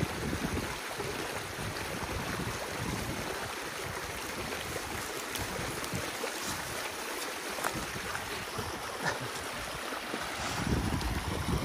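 Water gurgles and splashes over a small dam of sticks.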